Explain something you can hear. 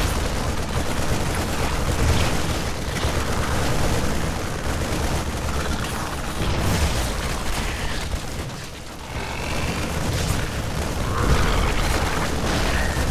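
Gunfire and explosions from a computer game battle crackle steadily.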